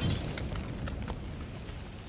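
Fire crackles close by.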